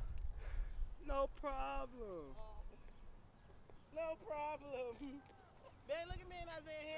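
A young man laughs and shouts with excitement.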